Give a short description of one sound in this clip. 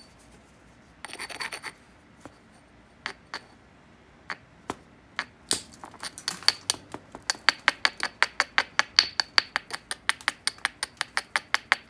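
A stone taps and scrapes against the edge of a piece of obsidian in quick, sharp clicks.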